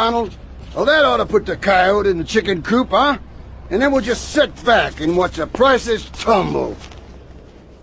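A man speaks with animation in a drawling voice.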